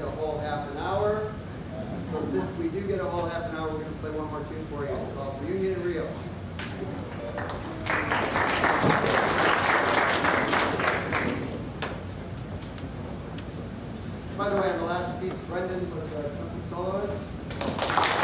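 A man speaks calmly through a loudspeaker in an echoing hall.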